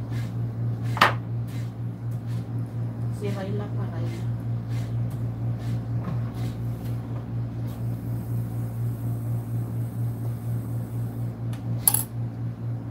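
A fork clinks and scrapes against a plate.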